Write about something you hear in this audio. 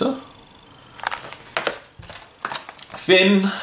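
A plastic toy package crinkles in a hand.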